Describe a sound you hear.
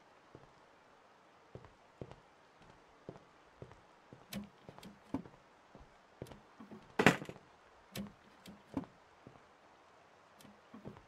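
Wooden cupboard doors knock and thud as they open and shut.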